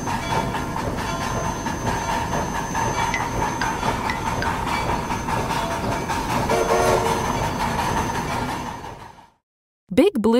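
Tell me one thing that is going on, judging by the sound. A train rolls along clattering on rails.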